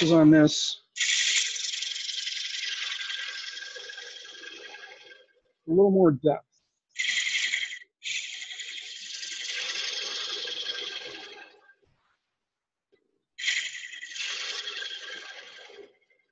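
A chisel scrapes against spinning wood on a lathe in bursts that slowly fade.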